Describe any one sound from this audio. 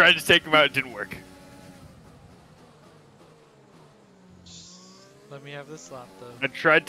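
A racing car engine drones and shifts pitch as the car speeds along.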